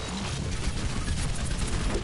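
Explosions boom in a game.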